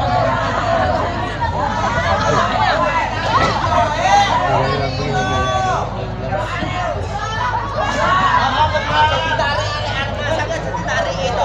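A young woman sings loudly through a loudspeaker system.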